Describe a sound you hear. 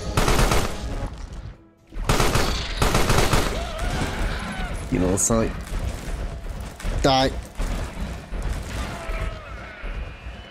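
Loud bursts of gunfire and blasts crackle in quick succession.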